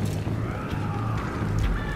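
A fire crackles in a metal barrel.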